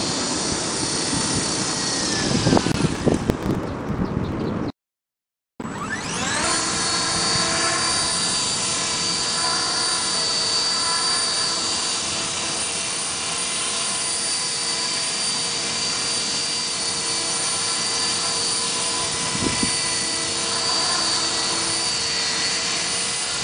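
A small toy helicopter's rotor and motor whir and buzz steadily nearby.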